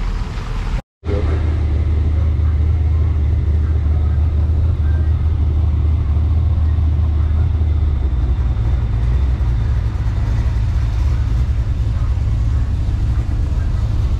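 A car engine idles close by with a deep, steady rumble.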